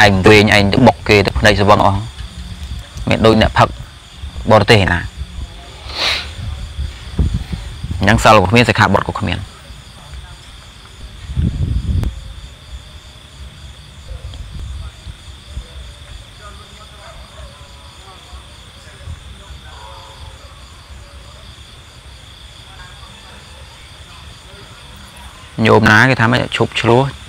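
A young man speaks calmly and close up, with pauses.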